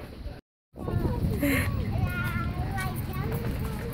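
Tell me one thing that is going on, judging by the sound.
A young child speaks softly close by.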